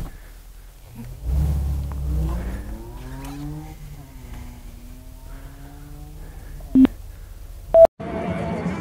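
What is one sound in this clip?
A car engine idles and revs up inside the cabin.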